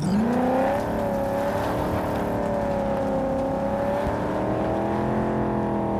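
A car engine revs up and then hums steadily.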